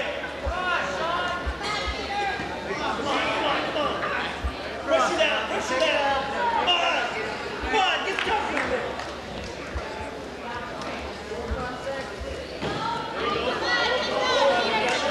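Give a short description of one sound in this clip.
A crowd of spectators shouts and cheers loudly in a large echoing gym.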